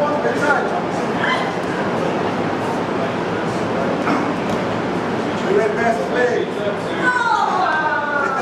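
A man shouts encouragement nearby in a large, echoing room.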